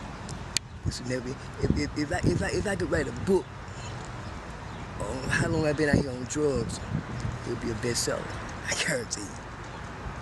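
An elderly woman speaks close by, outdoors.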